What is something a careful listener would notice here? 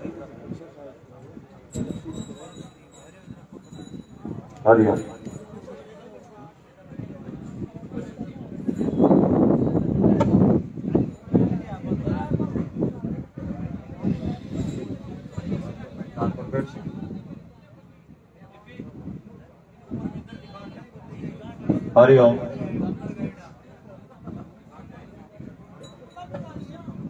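A group of men and women talk and murmur nearby outdoors.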